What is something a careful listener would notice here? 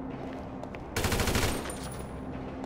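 A rifle fires a short burst of shots indoors.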